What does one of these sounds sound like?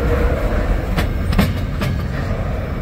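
Rail joints knock sharply under passing wheels.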